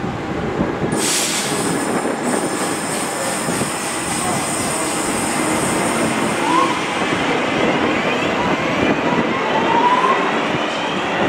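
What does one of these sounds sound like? Train wheels squeal and clatter on the rails as the train pulls away.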